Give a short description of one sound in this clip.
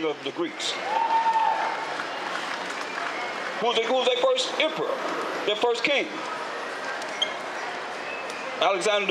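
A crowd murmurs on a busy street.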